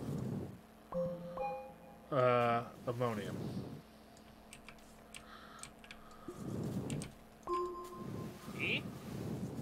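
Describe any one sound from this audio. Bright chimes ring out as items are picked up.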